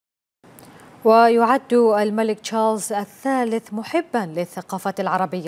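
A woman speaks clearly and calmly into a microphone, like a news presenter.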